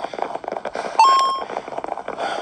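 A short chime rings as a coin is picked up in a game.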